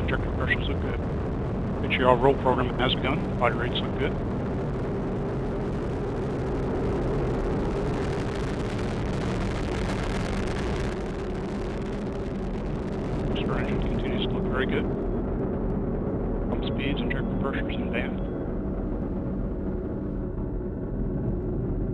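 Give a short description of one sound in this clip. A rocket engine roars steadily with a deep rumble.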